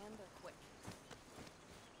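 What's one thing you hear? Footsteps clang on a metal ladder.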